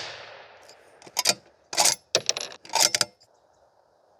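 A rifle bolt clacks open and shut with metallic clicks.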